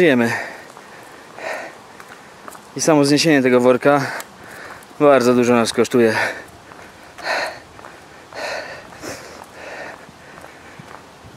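Footsteps tap on pavement outdoors.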